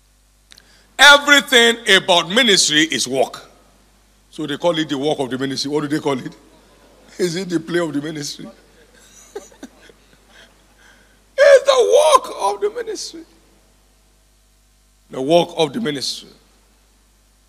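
An older man speaks with animation into a microphone, heard through loudspeakers, in short bursts with pauses.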